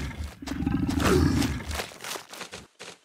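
A cartoon lion growls loudly.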